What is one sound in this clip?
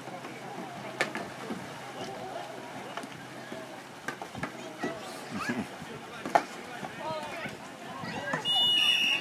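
Distant voices shout and call across the water outdoors.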